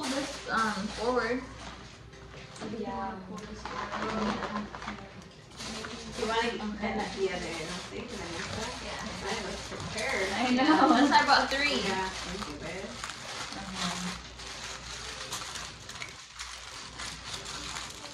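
Young women talk and laugh nearby with animation.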